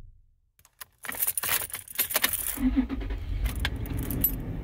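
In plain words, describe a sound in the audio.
A key turns in a car's ignition.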